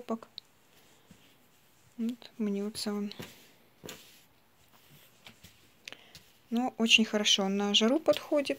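Cloth rustles softly under a hand.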